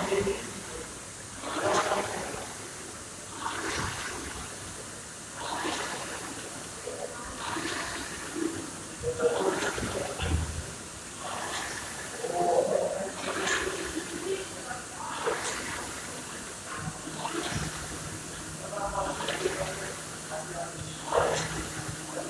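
A rowing machine's flywheel whooshes in rhythmic surges with each stroke.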